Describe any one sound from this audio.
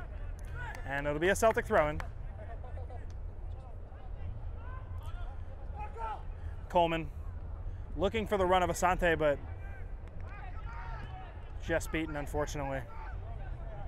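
Young men shout to each other outdoors across an open field.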